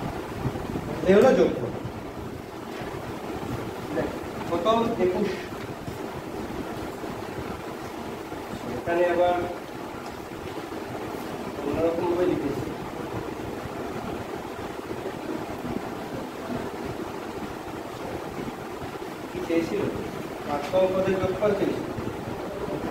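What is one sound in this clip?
A young man speaks calmly in short phrases with long pauses, close by.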